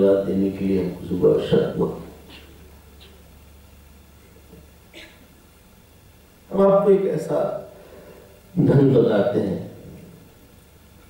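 A man speaks calmly into a microphone in bursts, with pauses between.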